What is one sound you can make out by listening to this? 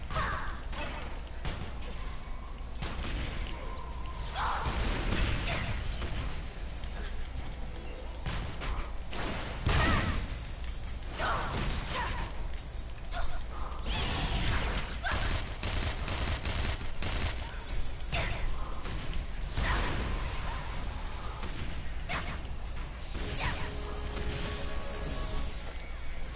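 Magic blasts burst and crackle again and again.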